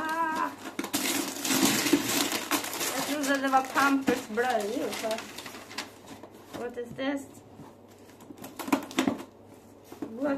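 Paper and plastic wrapping rustle and crinkle.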